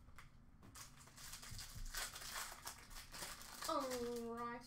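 A foil card pack crinkles and tears open close by.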